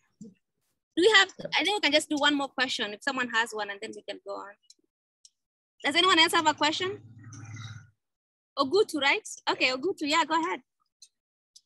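A boy speaks clearly into a microphone, heard over an online call.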